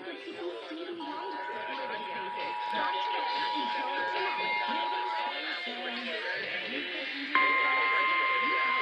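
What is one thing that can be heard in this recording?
A long steady alert tone sounds from a radio.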